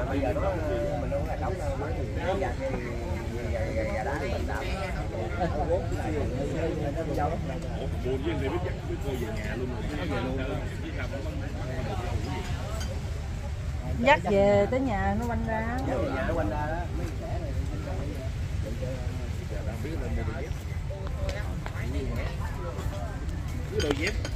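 Many people chat and murmur nearby outdoors.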